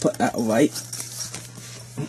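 A fabric case rustles and scrapes as hands handle it.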